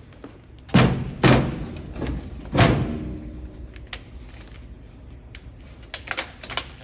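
A plastic case knocks and rattles against metal.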